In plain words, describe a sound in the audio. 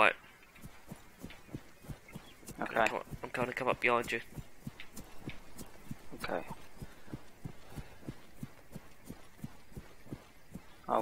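Footsteps rustle through tall grass at a steady pace.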